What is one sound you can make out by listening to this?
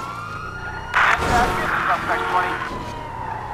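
A car crashes into a barrier with a loud thud.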